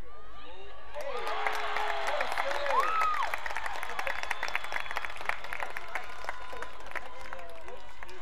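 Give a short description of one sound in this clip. A crowd of spectators cheers loudly outdoors.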